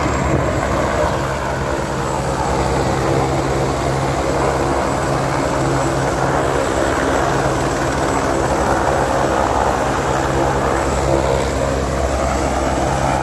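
A helicopter engine whines loudly and its rotor thumps steadily close by.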